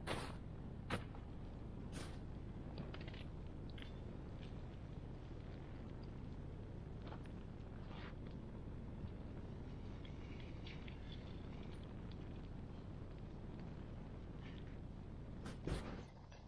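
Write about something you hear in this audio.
Burning wood crackles and pops.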